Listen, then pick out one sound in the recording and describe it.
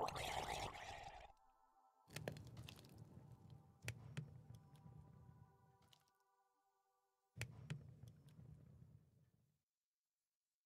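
Game menu clicks sound as items are moved.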